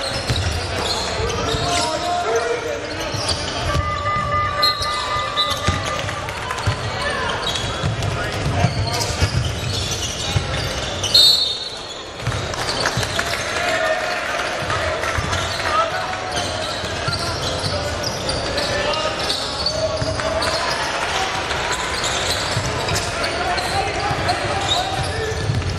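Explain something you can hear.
A basketball bounces on the court with dull thumps.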